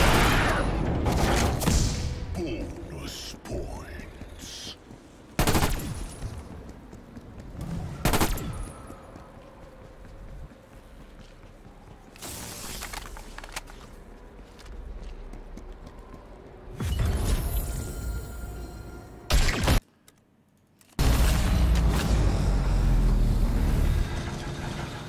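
Gunfire and explosions boom.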